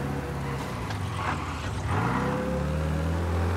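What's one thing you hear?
A car passes close by with a brief rising and falling whine.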